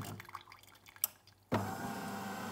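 A coffee machine clicks.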